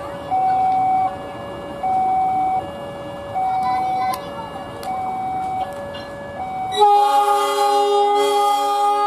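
A diesel locomotive engine rumbles.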